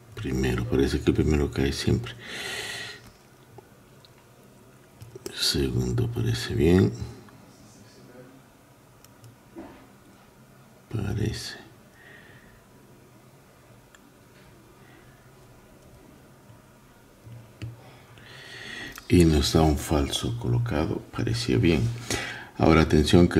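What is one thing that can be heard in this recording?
Metal picks click and scrape faintly inside a small lock.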